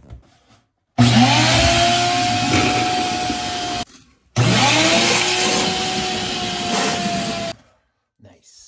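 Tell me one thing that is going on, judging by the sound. A wet vacuum roars loudly as it sucks up water with a gurgling slurp.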